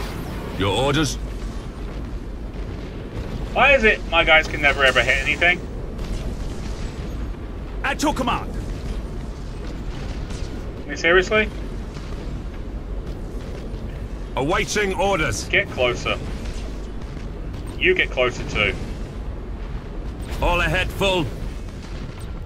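A man talks in short bursts close to a microphone.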